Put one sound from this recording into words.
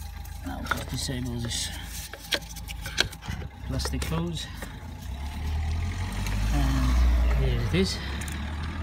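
Metal engine parts click and clink as they are handled.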